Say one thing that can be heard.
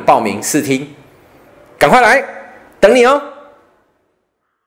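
A man speaks with animation close to a microphone, in a room with a slight echo.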